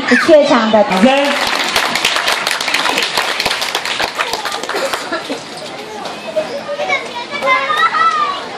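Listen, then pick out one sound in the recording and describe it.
Young children sing together loudly outdoors.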